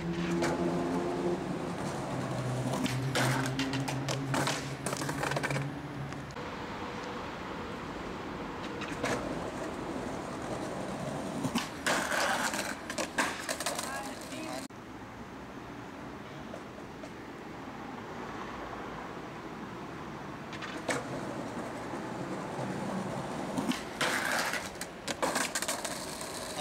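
Skateboard wheels roll over stone pavement.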